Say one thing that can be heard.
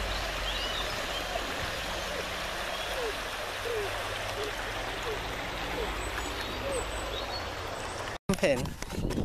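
A stream rushes and gurgles over stones.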